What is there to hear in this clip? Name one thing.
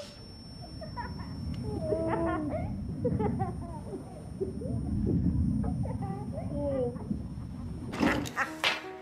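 A boy shouts and laughs excitedly.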